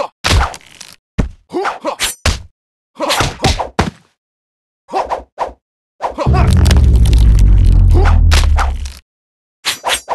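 Blades swish and clash in quick bursts.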